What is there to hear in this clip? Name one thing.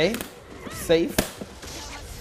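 A heavy punch lands with a sharp smack.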